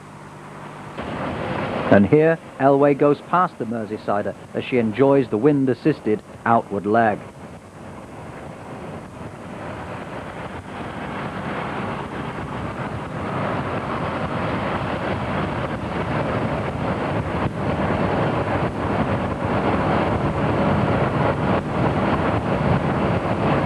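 Wind rushes loudly past a fast-moving cyclist outdoors.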